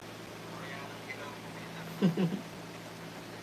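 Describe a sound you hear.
A young man laughs softly close by.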